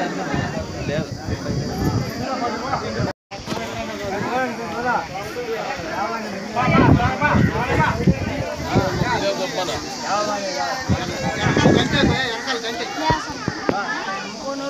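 A crowd of men talks and murmurs nearby outdoors.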